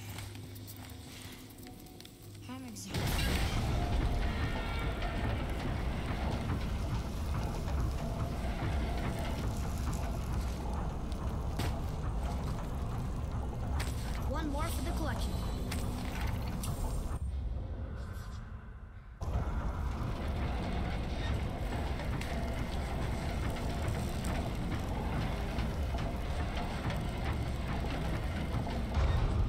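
A fire crackles and roars in an open brazier.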